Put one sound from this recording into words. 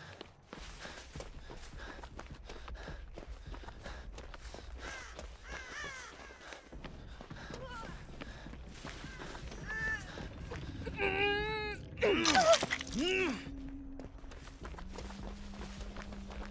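Footsteps rustle quickly through grass and dirt.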